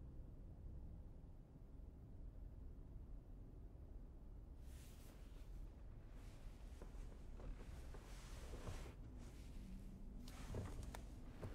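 Hands brush and tap against glass.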